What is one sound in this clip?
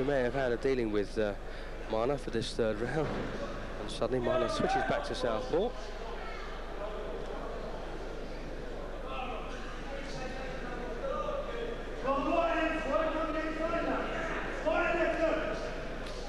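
A crowd of men shouts and cheers loudly in an echoing hall.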